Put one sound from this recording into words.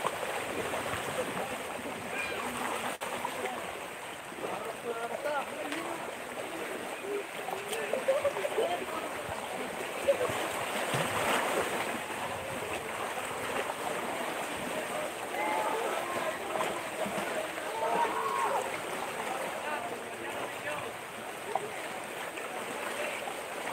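Children splash in shallow water.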